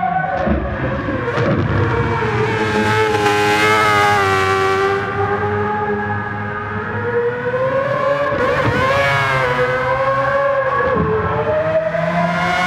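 A racing car engine screams at high revs, rising and falling as it shifts gears.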